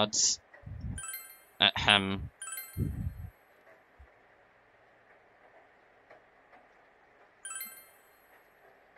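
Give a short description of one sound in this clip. Short bright electronic chimes ring as menu choices are made.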